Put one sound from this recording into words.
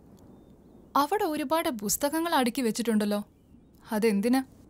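A young woman speaks close by with a sharp, mocking tone.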